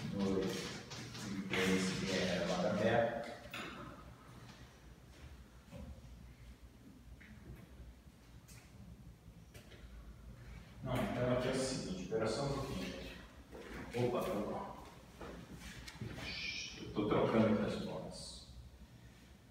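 An older man speaks calmly, as if lecturing.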